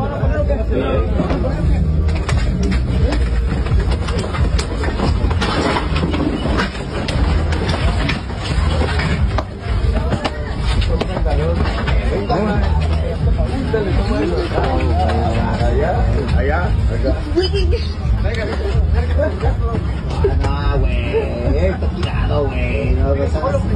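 A crowd of men shouts and yells nearby.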